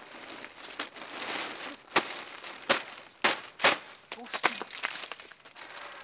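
Paper and plastic crash and tumble onto a heap.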